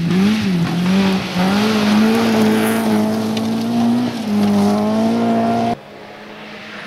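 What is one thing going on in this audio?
A rally car engine roars and revs hard as the car speeds by.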